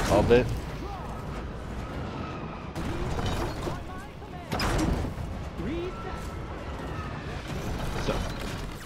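Guns fire in bursts with sharp blasts.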